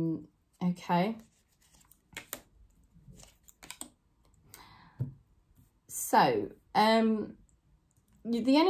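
A woman speaks calmly and expressively close to the microphone.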